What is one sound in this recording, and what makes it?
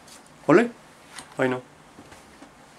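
An elderly man speaks briefly and calmly, close by.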